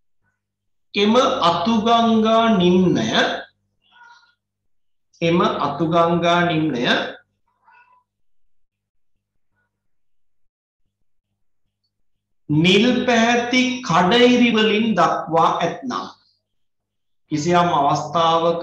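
A man speaks calmly and clearly nearby, as if explaining a lesson.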